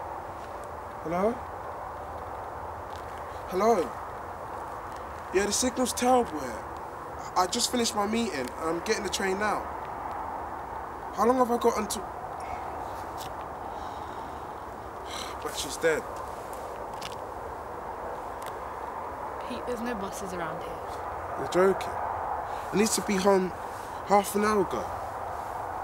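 A young woman talks in a low voice outdoors.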